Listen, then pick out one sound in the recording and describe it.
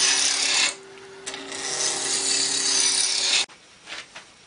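A lathe whirs steadily.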